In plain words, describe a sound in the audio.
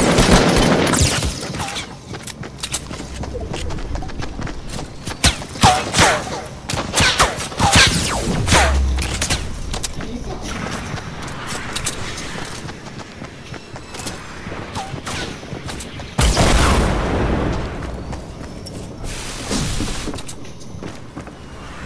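Wooden panels snap into place with quick, rapid knocks.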